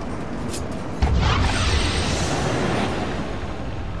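A magical portal swirls open with a loud whoosh.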